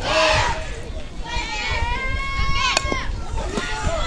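A bat cracks against a softball.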